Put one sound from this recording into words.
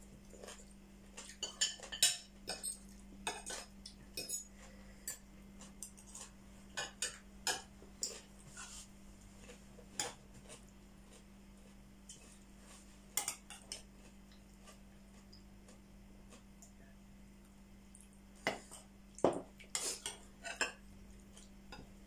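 Two young women chew and smack their lips loudly while eating.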